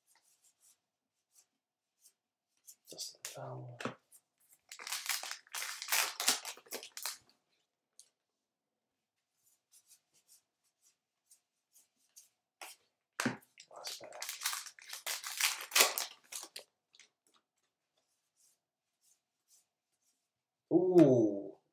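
Trading cards rustle and slide as they are shuffled.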